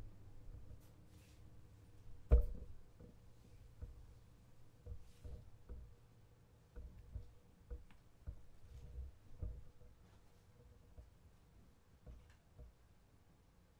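Objects knock and clatter close by.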